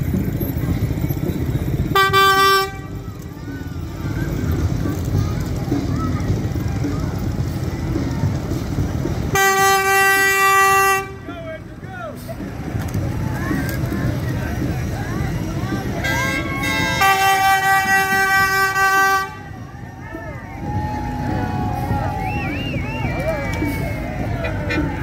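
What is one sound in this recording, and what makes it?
A truck engine rumbles as it rolls slowly past.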